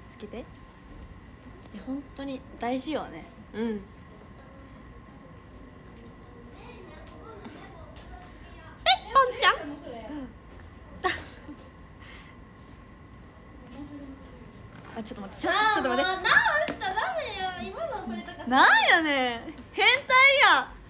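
A young woman talks cheerfully and close up into a phone microphone.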